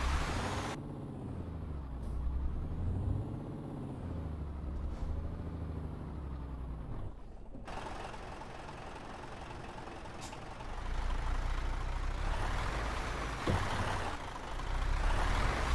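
A truck engine rumbles low and steady, rising and falling in pitch.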